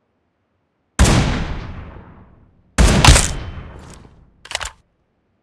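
A rifle fires two loud shots that echo and fade.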